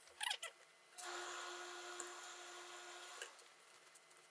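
A steam iron hisses.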